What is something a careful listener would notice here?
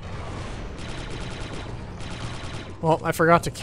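A blaster rifle fires rapid bursts of shots.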